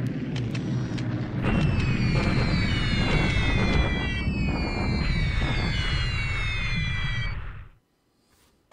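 Falling bombs whistle and explode in rumbling blasts.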